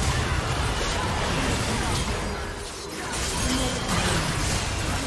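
Spell effects crackle and burst during a fast fight.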